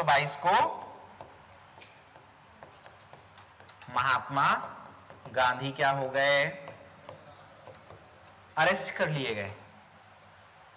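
A marker squeaks and scratches on a board.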